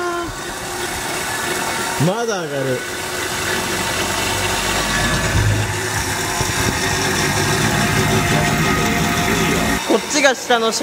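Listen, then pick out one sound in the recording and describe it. A machine's wheels spin with a steady whirring rumble.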